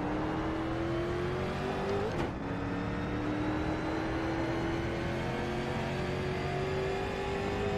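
A race car engine roars steadily, rising in pitch as it speeds up.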